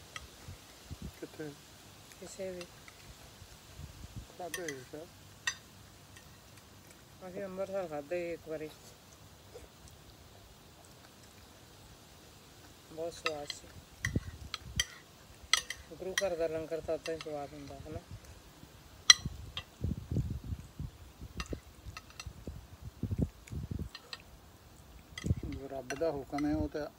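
Spoons clink and scrape against plates.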